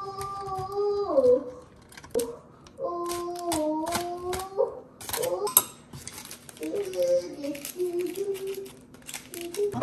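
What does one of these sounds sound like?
Aluminium foil crinkles.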